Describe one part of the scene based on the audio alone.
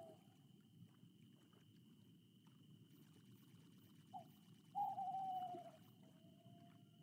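Gentle waves lap softly against a boat.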